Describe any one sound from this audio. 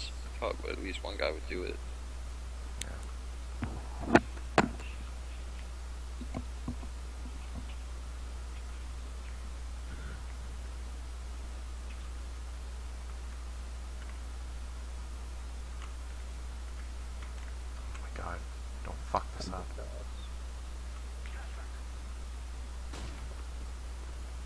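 Footsteps patter on hard floor.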